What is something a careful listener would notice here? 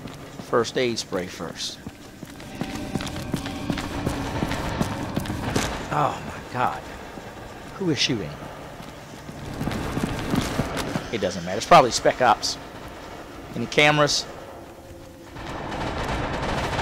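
Heavy boots thud slowly on a hard floor.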